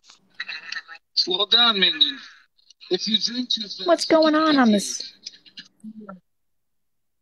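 A man talks through a phone microphone.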